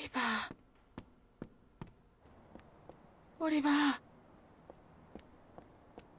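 Light footsteps tap on pavement.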